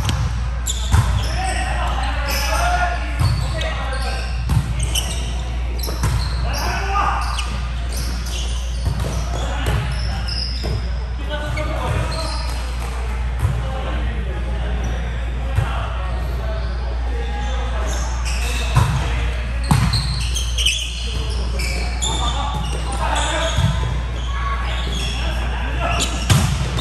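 A volleyball thumps against players' hands and arms.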